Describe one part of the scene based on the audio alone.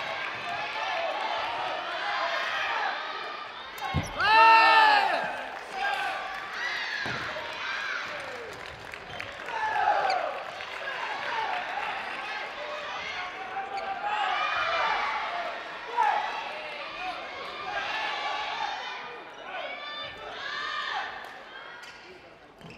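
A crowd of young people chatters and cheers in a large echoing hall.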